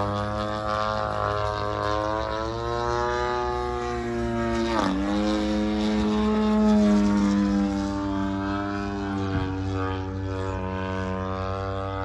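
A small propeller plane drones overhead, its engine pitch rising and falling.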